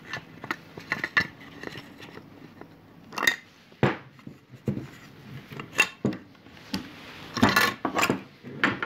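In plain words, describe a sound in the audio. A long propeller creaks and knocks as it is flexed by hand.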